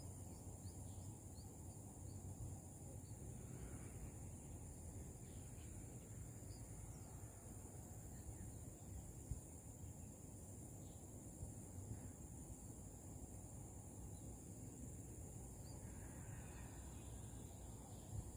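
Wind blows and rustles leaves outdoors.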